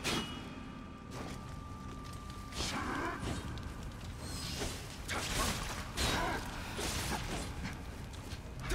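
Blades slash and clash in a fight.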